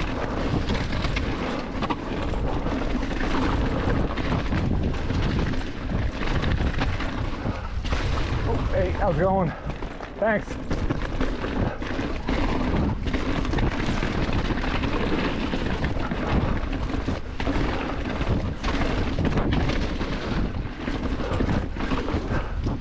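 A bike's chain and frame rattle over bumps.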